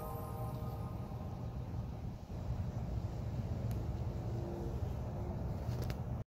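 Wind blows outdoors, rustling leaves in the trees.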